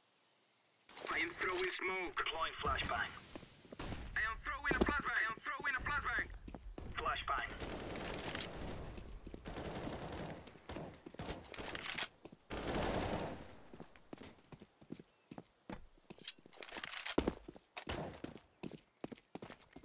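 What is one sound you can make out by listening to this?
Footsteps run across stone pavement.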